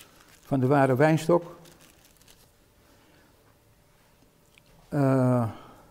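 An elderly man reads aloud slowly and calmly, close by.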